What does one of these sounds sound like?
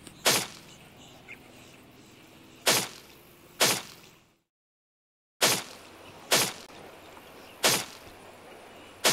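Short game menu clicks pop now and then.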